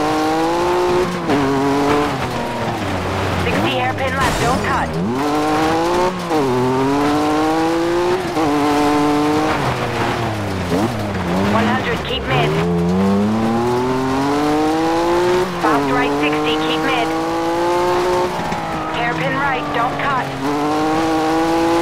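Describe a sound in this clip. Tyres crunch and skid on loose gravel.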